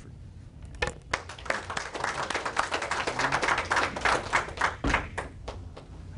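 Several people in an audience murmur and chatter.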